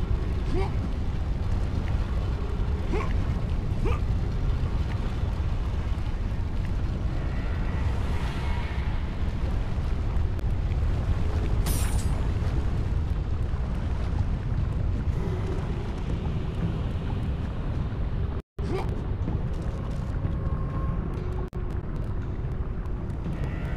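Molten lava roars with a deep, steady rumble.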